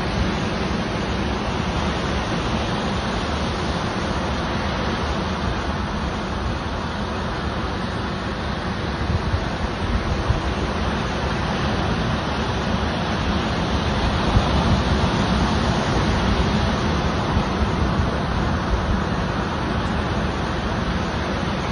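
Ocean waves break and wash onto the shore.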